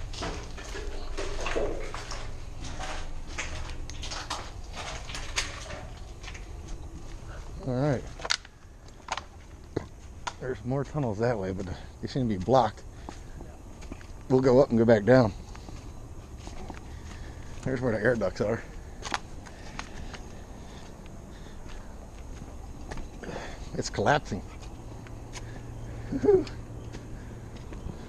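Footsteps crunch over gravel and dry leaves.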